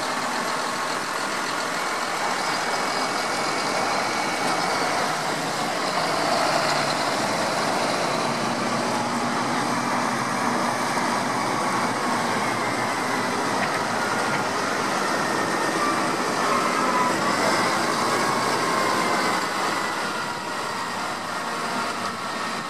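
Tractor engines rumble steadily as tractors drive past close by.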